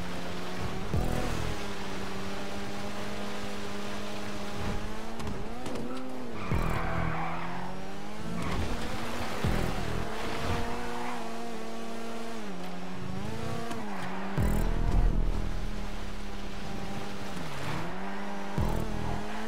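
A car engine roars steadily at high revs, rising and falling as it shifts gear.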